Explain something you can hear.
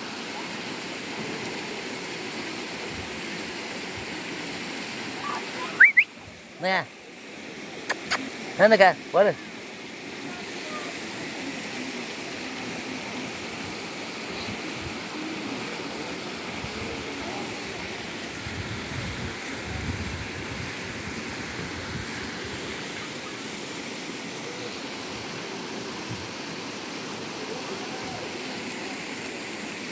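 Water rushes steadily over a low weir outdoors.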